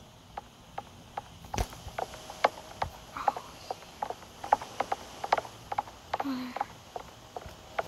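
Footsteps tap steadily on a hard floor.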